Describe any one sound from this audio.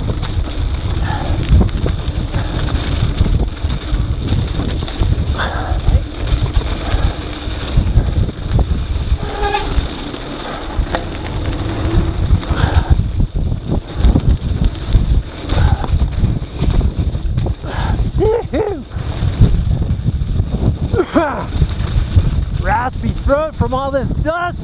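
Wind rushes loudly over the microphone.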